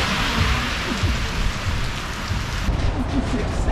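Rain patters steadily on wet pavement outdoors.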